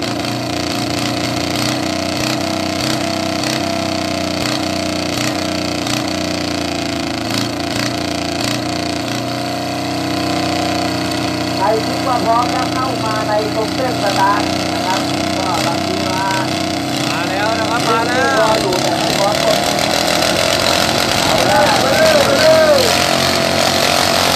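A small engine idles with a steady rattling hum.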